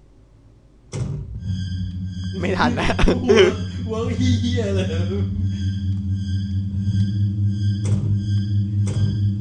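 Tense music starts suddenly and plays on with a steady low drone.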